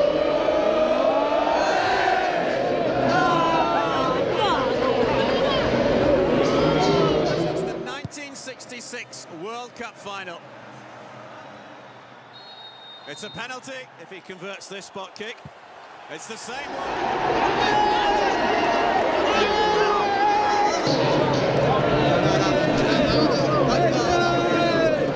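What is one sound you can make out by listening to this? A large crowd of young men cheers and sings loudly outdoors.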